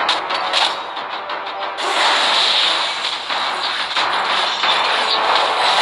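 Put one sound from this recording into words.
Game combat effects clash and burst in quick succession.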